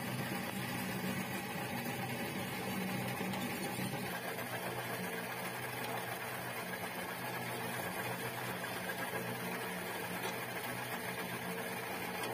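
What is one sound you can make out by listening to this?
A machine motor hums and whirs steadily.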